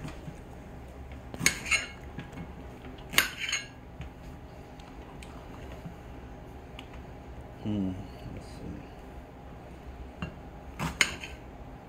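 A knife slices through a pepper and taps on a plate.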